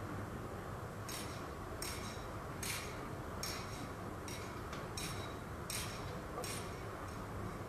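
Metal chains jingle in a steady rhythm.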